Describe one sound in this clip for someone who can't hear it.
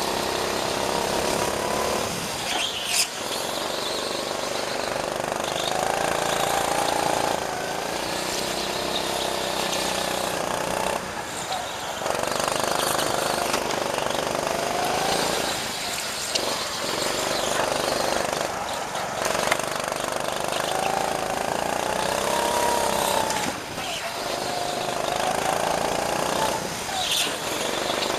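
A small kart engine whines loudly up close, rising and falling in pitch as it speeds up and slows down.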